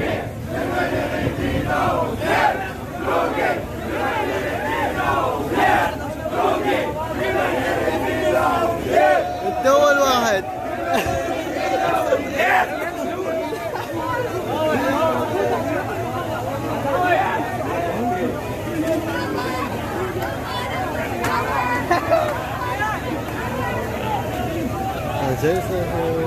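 A large crowd of young men chants and shouts loudly outdoors.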